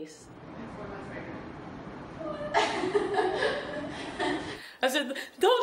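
Young women chat casually, heard through a phone's microphone.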